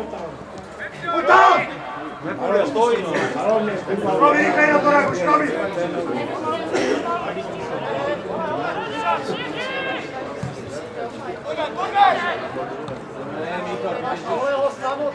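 A crowd of spectators talks and calls out outdoors.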